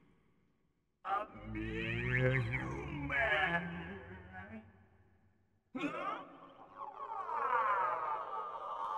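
A deep magical whooshing effect swells and sweeps.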